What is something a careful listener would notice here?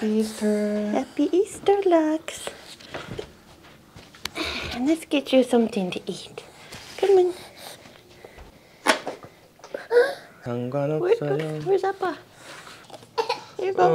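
A young woman talks gently and playfully to a toddler close by.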